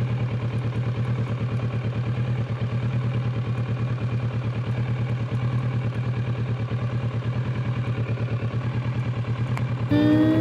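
A car engine hums steadily with a fast, throbbing pulse.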